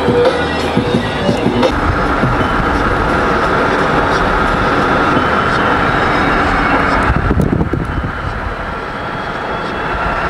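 A vehicle rumbles steadily as it drives along.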